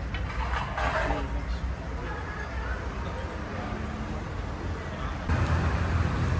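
A metal skimmer scrapes against a pot.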